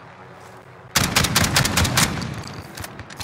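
A shotgun fires several loud blasts in quick succession.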